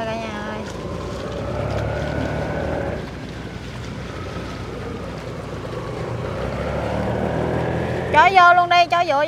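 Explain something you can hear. A boat engine rumbles low and steady.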